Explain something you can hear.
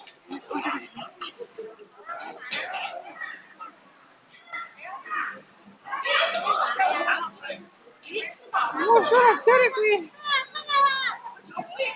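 Young children shout and chatter excitedly nearby.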